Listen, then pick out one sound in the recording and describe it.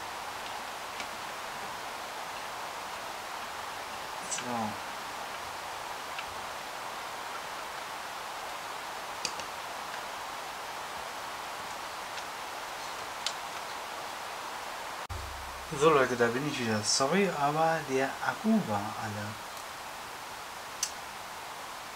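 Plastic parts click and knock.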